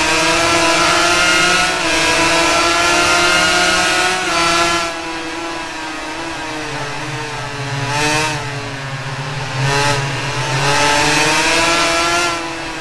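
A two-stroke 250cc racing motorcycle engine screams at full throttle, shifting up through the gears.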